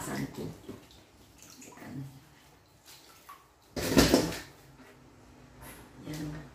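Water splashes in a sink as hands rub and rinse.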